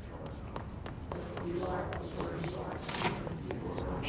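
Footsteps run and then walk across a hard floor in a large echoing hall.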